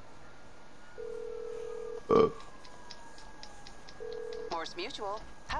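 A phone line rings with a steady tone.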